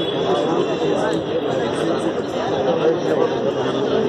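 A crowd of people murmurs and talks outdoors.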